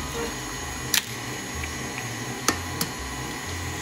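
An egg cracks sharply against a bowl's rim.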